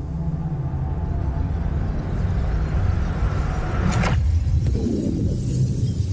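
A deep, steady rumble swells as a large stone device powers up.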